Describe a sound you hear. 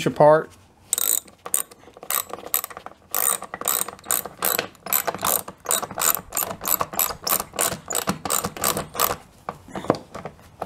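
A small metal lock clicks sharply again and again as it is turned.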